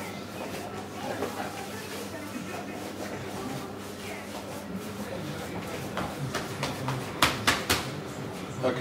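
Hands squish and knead soft minced meat.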